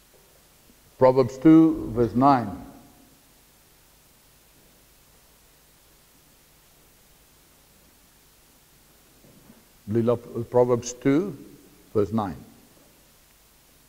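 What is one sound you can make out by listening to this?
A middle-aged man speaks slowly and thoughtfully, pausing between phrases.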